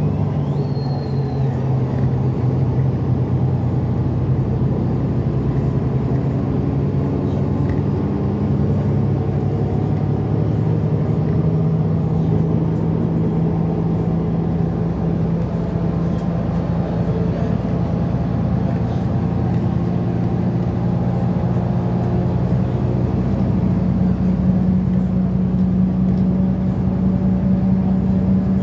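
A bus engine hums steadily as it drives along.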